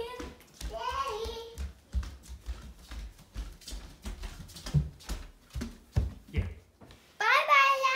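Footsteps thud on a wooden floor close by.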